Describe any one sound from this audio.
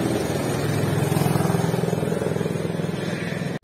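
A go-kart engine buzzes and whines as the kart drives by.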